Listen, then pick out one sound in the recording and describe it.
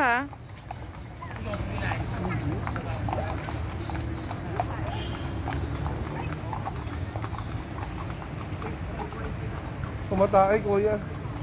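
A horse's hooves clop on pavement.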